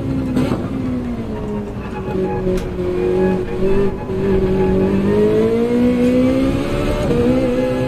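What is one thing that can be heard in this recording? A racing car engine roars, dropping in pitch and then revving higher again.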